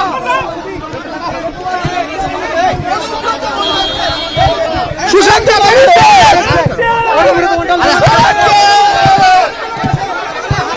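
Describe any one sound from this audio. A crowd of men shouts and clamours excitedly close by.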